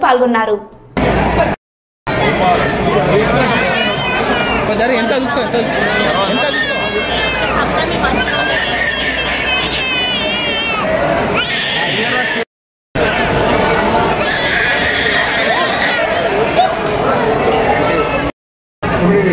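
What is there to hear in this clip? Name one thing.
A crowd of people chatter and talk close by.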